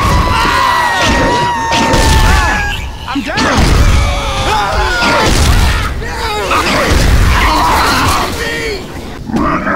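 A monster pounds a survivor with heavy thumping blows.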